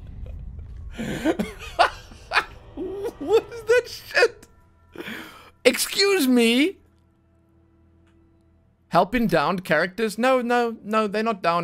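A young man talks and laughs with animation into a close microphone.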